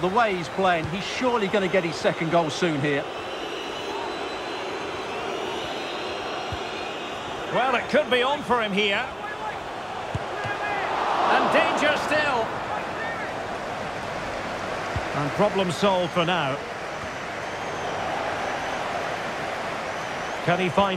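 A large stadium crowd murmurs steadily and swells into a roar.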